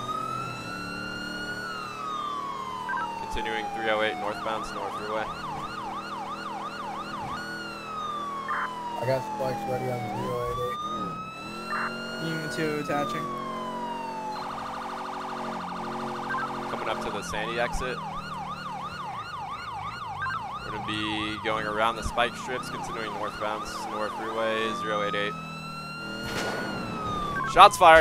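A police siren wails, switching between slow rising and falling tones and fast yelps.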